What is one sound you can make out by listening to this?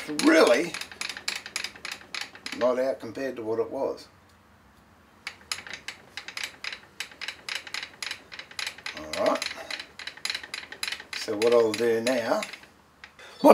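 A metal vise crank clicks and rattles as it is turned by hand.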